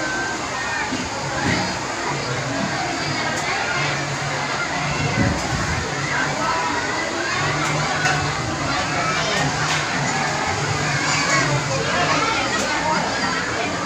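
Water splashes steadily in a pool.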